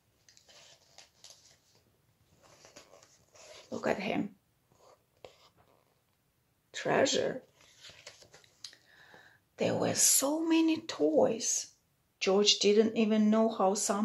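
A woman reads aloud close by, with animation.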